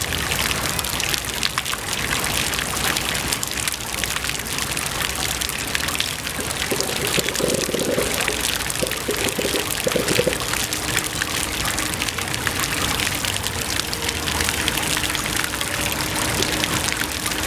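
Water splashes and patters steadily from small fountains.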